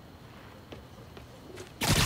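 Footsteps run quickly over a dirt path.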